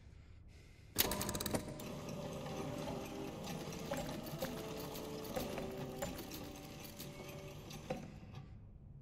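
Heavy metal discs grind and clank as they turn.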